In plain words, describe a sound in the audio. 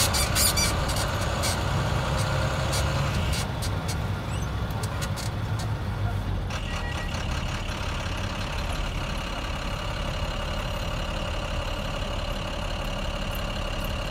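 A vehicle engine hums steadily from inside a moving car.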